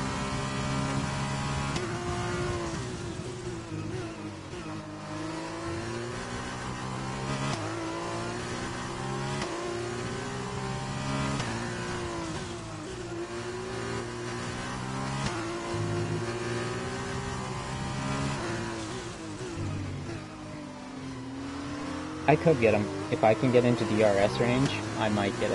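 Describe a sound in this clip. A racing car engine screams at high revs, rising and falling as it shifts gears.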